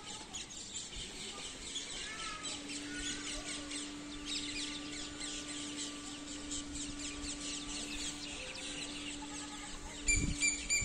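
A peacock shakes its spread tail feathers with a fast rustling rattle.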